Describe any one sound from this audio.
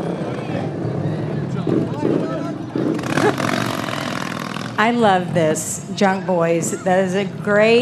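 A crowd chatters and calls out along the street.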